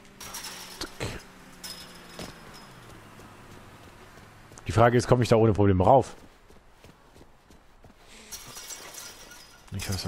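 A chain-link fence rattles as someone climbs over it.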